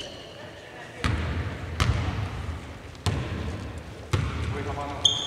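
A basketball bounces on a hardwood court in a large echoing hall.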